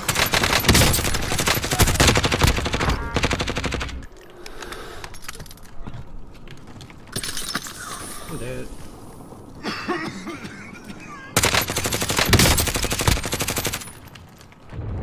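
Rapid gunfire bursts loudly, close by.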